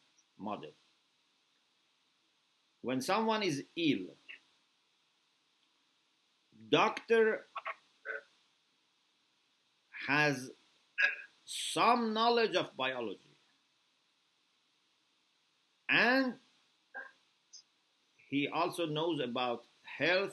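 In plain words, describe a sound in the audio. A middle-aged man speaks calmly and slowly in short phrases, close to a microphone, as if on an online call.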